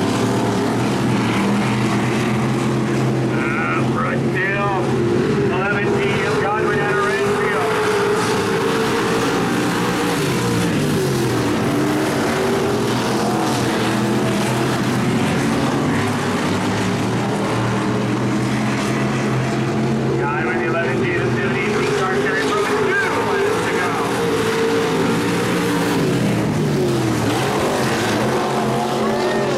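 Race car engines roar and rev loudly, rising and falling in pitch.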